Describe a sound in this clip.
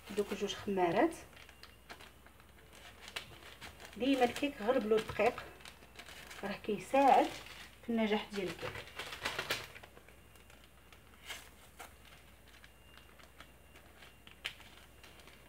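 A paper packet crinkles and rustles in someone's hands.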